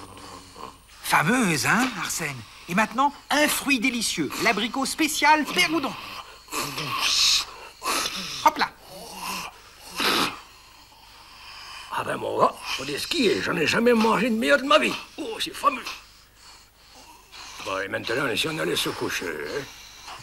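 A man speaks in a playful, animated character voice into a microphone.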